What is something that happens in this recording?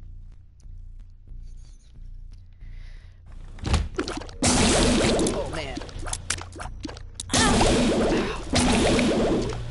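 Small shots pop and splat in quick succession.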